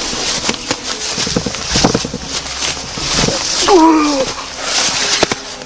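Grass rustles as a body rolls through it.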